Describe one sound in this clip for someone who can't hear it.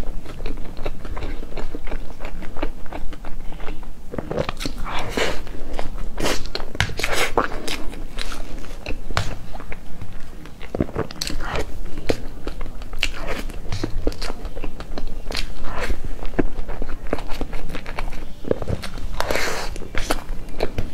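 A young woman chews soft food wetly and smacks her lips close to a microphone.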